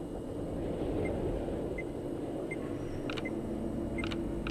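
An electronic device beeps in short, high blips every second or so.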